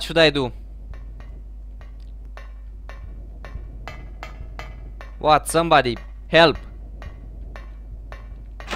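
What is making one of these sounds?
Footsteps clank on a metal grating.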